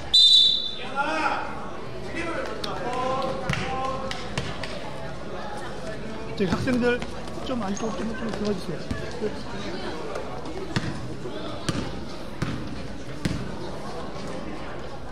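A crowd of children and adults chatters and cheers in an echoing hall.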